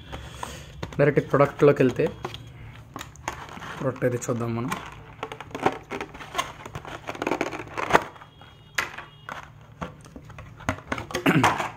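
Stiff plastic packaging crackles and clicks as it is handled.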